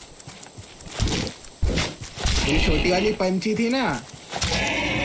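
A wooden spear thuds into an animal several times.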